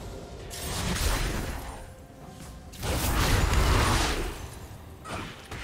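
Game spells burst and crackle in a fight.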